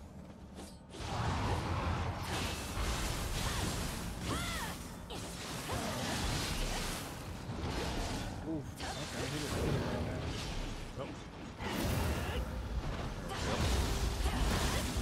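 Swords clash and slash in a game fight, with loud bursts of impact.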